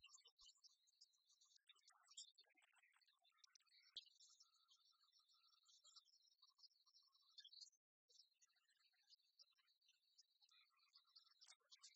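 Dice roll and clatter in a tray.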